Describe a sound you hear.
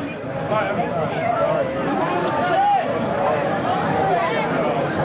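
A drummer plays a drum kit loudly in an echoing hall.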